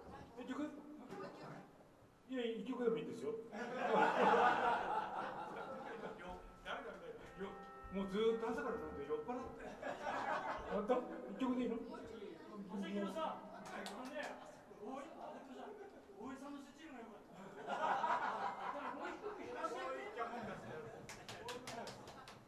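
A live band plays music in a small room.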